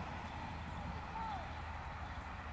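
A sheep bleats faintly in the distance.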